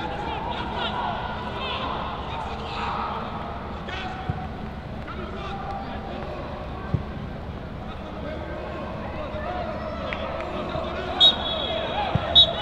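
Men shout and call out in the distance, outdoors.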